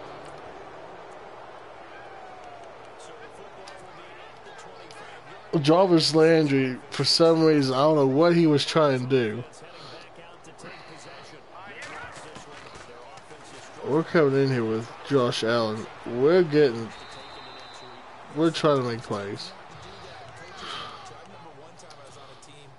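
A stadium crowd murmurs steadily in the background.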